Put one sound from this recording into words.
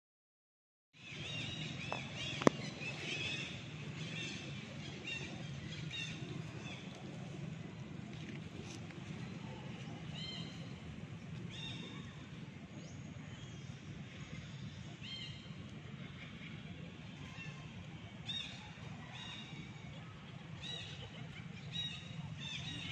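A baby monkey squeals and chirps in short, high cries.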